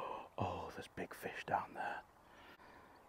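A man talks close to a clip-on microphone.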